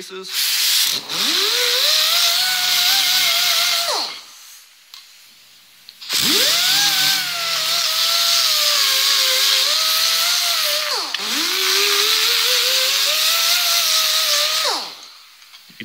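A small rotary power tool whines as it spins up, runs and winds down.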